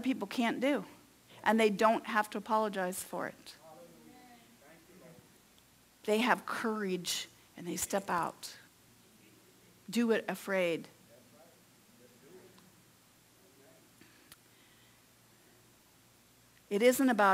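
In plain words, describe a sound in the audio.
A middle-aged woman speaks with feeling into a microphone, pausing often.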